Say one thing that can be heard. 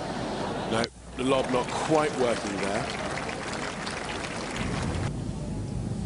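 A crowd applauds in a large arena.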